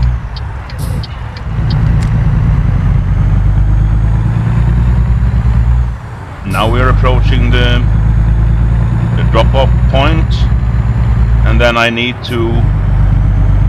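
A truck engine rumbles low and steady, dipping briefly as gears change.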